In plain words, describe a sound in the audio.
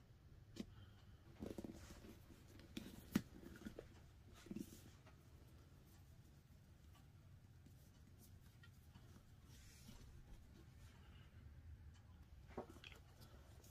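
A small tool clicks and taps against a hard surface.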